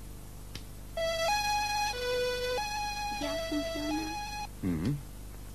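An electronic toy plays a short beeping tune.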